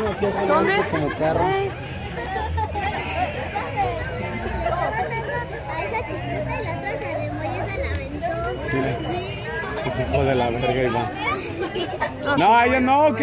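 Young children chatter and call out excitedly nearby.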